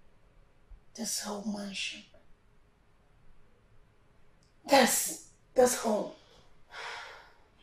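An older woman speaks with emotion close by.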